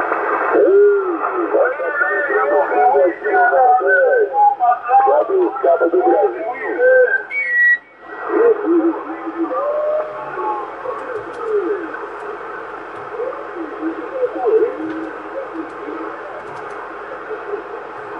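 A radio receiver hisses with steady static, heard through a loudspeaker.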